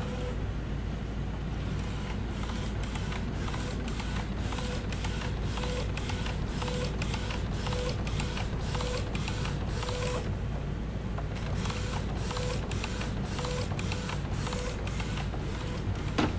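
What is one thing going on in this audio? A printer motor hums steadily.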